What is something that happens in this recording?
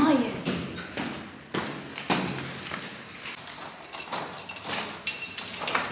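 Footsteps tap up a stairwell.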